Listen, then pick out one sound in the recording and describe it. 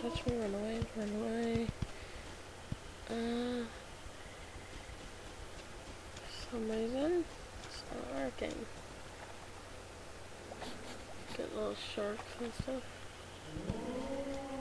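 Footsteps patter along at a walking pace.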